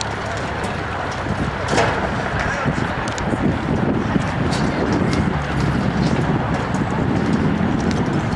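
Traffic hums steadily on a distant highway.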